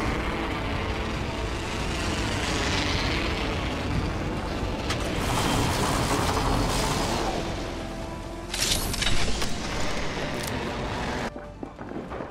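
Wind rushes loudly past during a fast fall.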